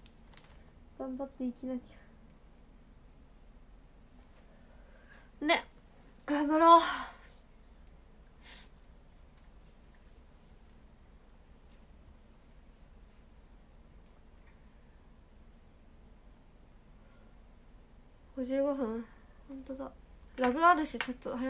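A young woman speaks softly and close by, in short bursts with long pauses.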